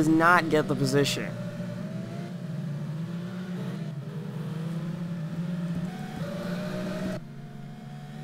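A racing car engine drones steadily, its pitch rising and falling.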